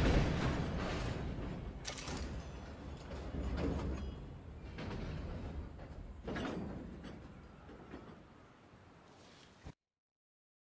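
A freight train rumbles and clatters along the tracks, slowly fading.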